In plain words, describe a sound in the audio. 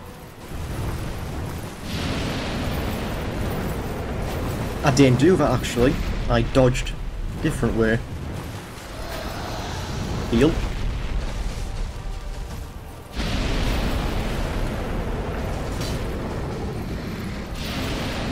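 A sword swings and strikes.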